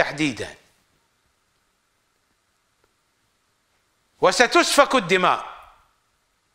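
An elderly man speaks calmly and clearly into a close microphone, with pauses.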